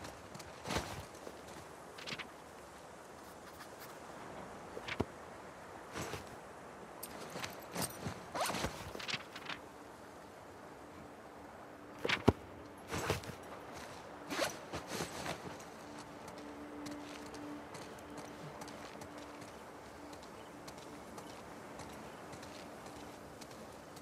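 Footsteps scuff on a hard floor.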